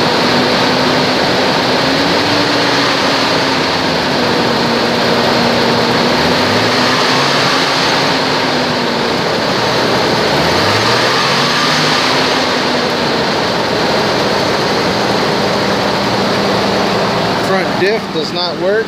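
An engine idles loudly and steadily up close.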